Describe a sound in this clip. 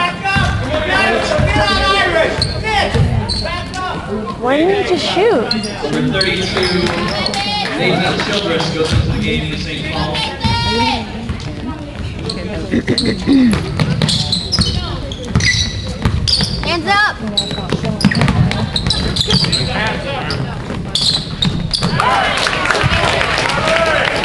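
A crowd of spectators shouts and cheers, echoing through a large hall.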